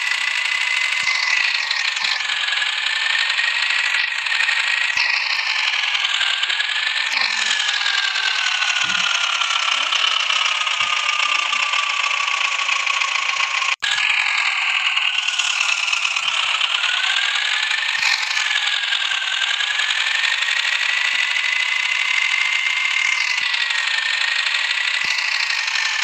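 A tractor engine drones, rising and falling in pitch.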